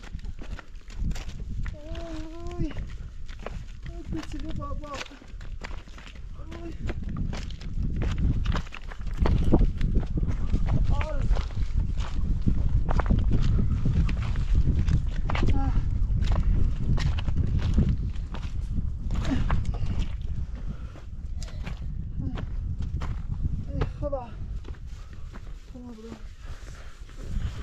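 Footsteps crunch on loose stones.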